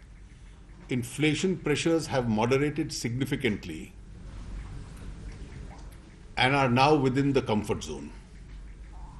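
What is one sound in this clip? A man speaks calmly into microphones, in short bursts with pauses.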